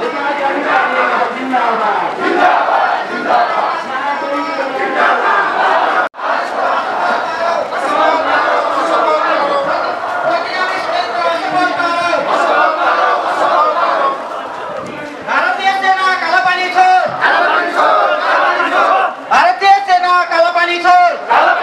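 A crowd of men and women chants and talks loudly outdoors.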